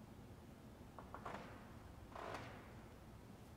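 Small objects clink and rustle as a man handles them in a large echoing hall.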